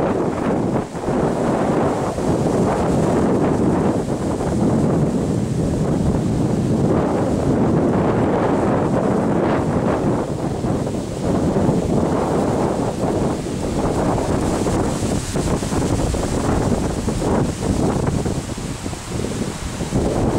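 Tree leaves rustle and shake in the wind.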